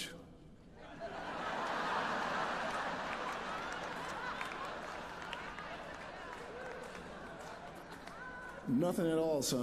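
A large audience claps.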